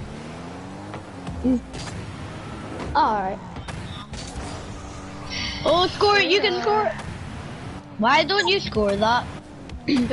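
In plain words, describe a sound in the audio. A car's boost roars in bursts.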